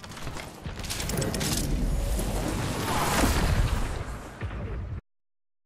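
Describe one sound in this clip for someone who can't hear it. Footsteps run quickly over dirt.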